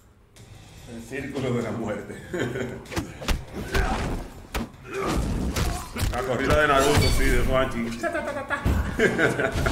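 Fighters' punches and kicks land with sharp thuds.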